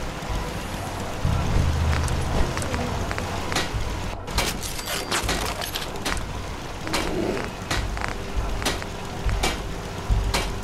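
Short soft clicks sound as menu items are switched.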